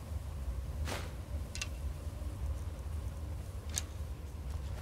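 Short sharp clicks sound several times.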